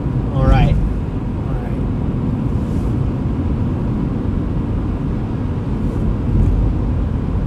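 A car engine hums and tyres rumble on the road, heard from inside the car.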